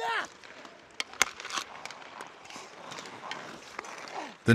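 A hockey stick knocks a puck with sharp clacks.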